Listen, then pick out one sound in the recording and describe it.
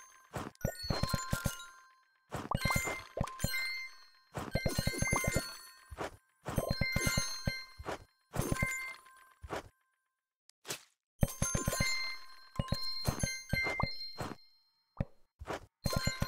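Bricks clack and knock into place in quick bursts of placing.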